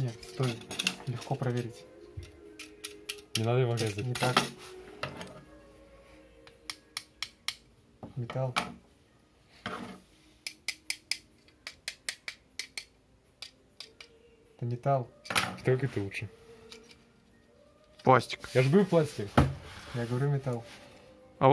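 Plastic toy parts click and snap as they are moved.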